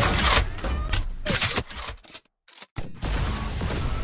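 A rifle is reloaded with a metallic click.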